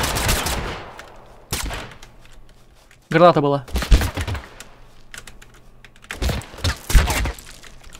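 Rifle shots crack loudly, one at a time, with a short echo.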